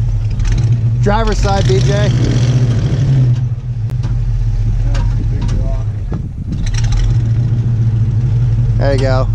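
A vehicle engine rumbles steadily at low revs.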